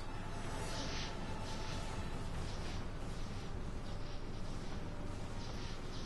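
A large explosion booms.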